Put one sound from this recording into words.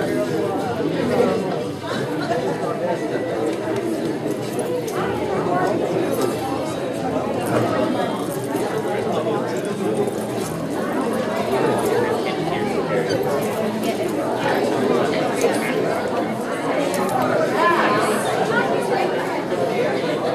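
A crowd of men and women chatters all around in a large room.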